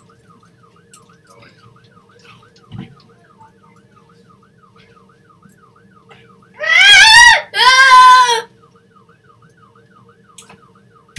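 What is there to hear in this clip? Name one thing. An ambulance siren wails quietly in a quick, steady up-and-down pattern.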